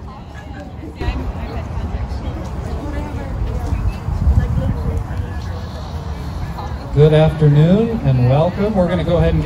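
A man speaks through a microphone and loudspeakers outdoors.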